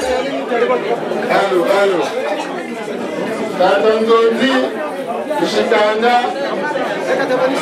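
A woman sings loudly through a loudspeaker.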